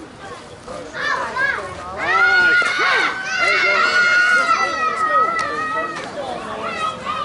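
A man shouts loudly across an open field.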